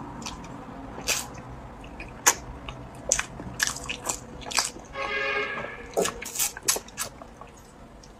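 A young woman sips a drink through a straw close to a microphone.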